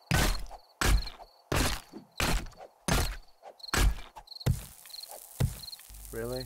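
A stone axe strikes flesh with repeated heavy thuds.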